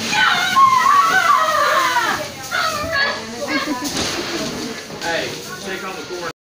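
Dry corn kernels rustle and shift as boys crawl through them.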